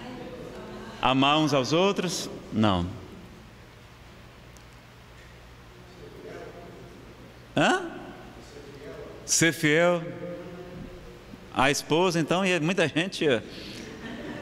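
A man speaks with animation into a microphone, heard over a loudspeaker with pauses between phrases.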